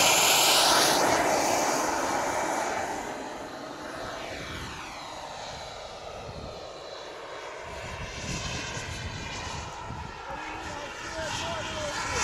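A small jet roars as it takes off and fades into the distance overhead.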